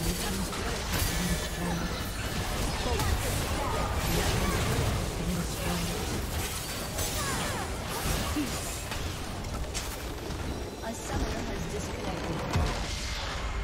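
Magic blasts and clashing weapons crackle and boom in a hectic game battle.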